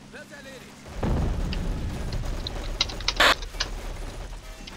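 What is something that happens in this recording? Gunfire rattles in a battle.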